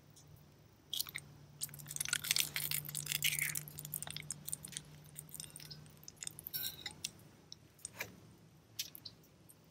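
An egg sizzles as it fries in a hot pan.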